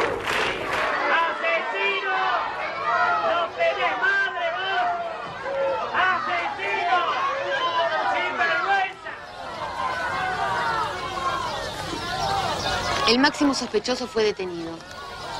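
Several men shout questions over one another close by.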